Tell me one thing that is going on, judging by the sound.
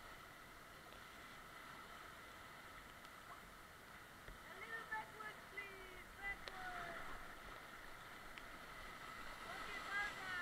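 River rapids rush and churn steadily close by.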